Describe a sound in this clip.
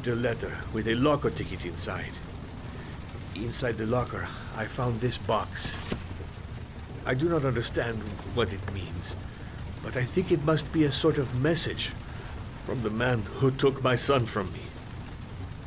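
A middle-aged man speaks in a low, serious voice.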